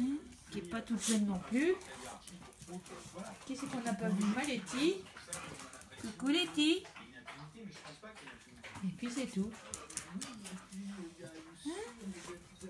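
A dog whines and whimpers close by.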